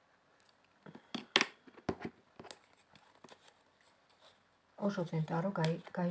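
A small cardboard box rustles and taps in someone's hands.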